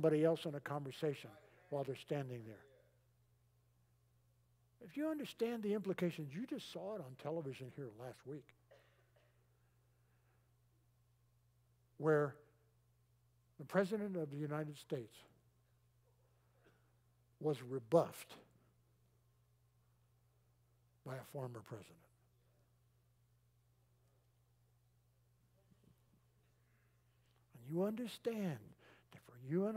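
An elderly man speaks calmly through a microphone, pausing between phrases.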